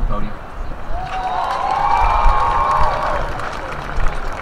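A crowd cheers and whistles.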